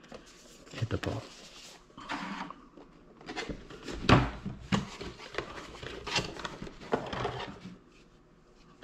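Cardboard packaging rustles and scrapes as a box is opened.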